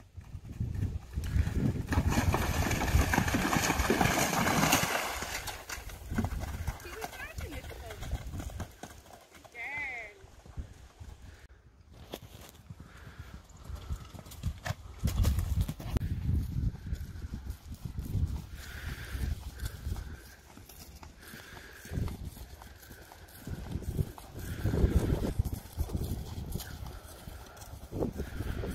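A horse's hooves thud on soft ground at a canter.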